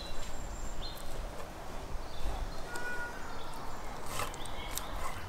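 A knife slices through raw meat on a wooden board.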